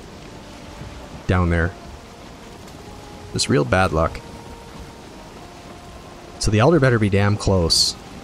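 A wooden boat cuts through water with a soft, steady splashing.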